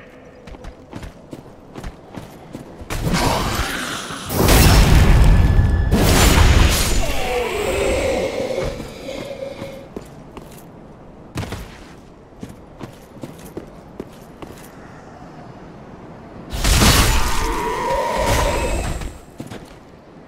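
Armoured footsteps crunch over gravel.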